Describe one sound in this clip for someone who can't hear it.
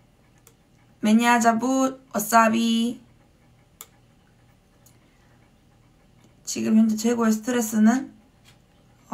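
A young woman speaks calmly and close up, in short bursts.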